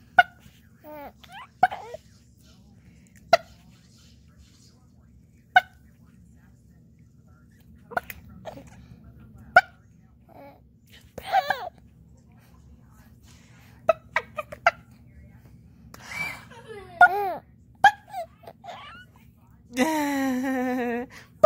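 A baby laughs and squeals up close.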